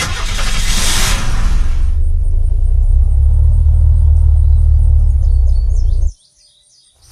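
A vehicle engine rumbles low and steady, then cuts off abruptly.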